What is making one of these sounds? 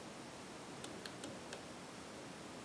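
Fingers handle small parts with faint, light clicks.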